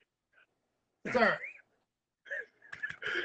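A second man laughs loudly over an online call.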